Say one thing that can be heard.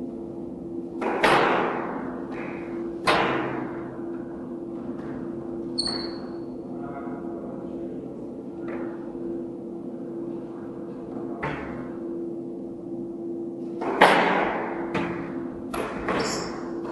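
A squash ball smacks hard against the walls, ringing out in an echoing court.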